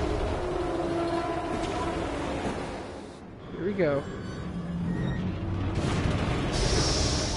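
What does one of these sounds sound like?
A huge machine rumbles deeply.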